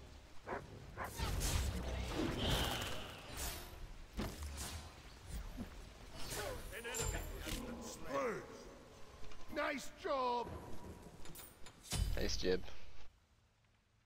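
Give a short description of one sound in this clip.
Magic spells blast and crackle in a fast fight.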